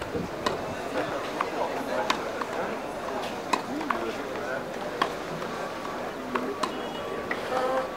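A crowd of spectators murmurs and chatters in the background.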